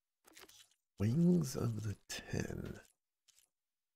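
A man speaks briefly and calmly close to a microphone.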